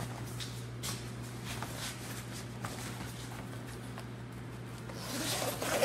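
Plastic sheeting rustles and crinkles as it is handled.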